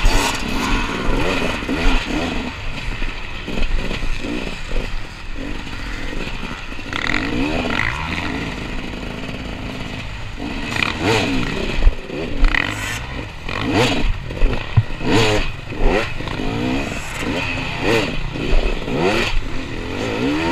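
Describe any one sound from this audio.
A dirt bike engine revs hard up and down close by.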